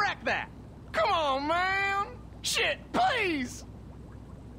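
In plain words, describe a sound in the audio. A young man pleads in fear, close by.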